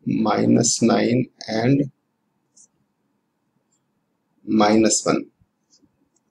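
A middle-aged man speaks calmly and clearly into a close microphone, with pauses.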